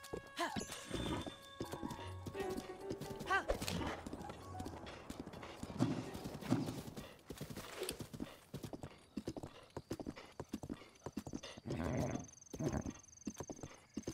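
Horse hooves thud on grass at a gallop.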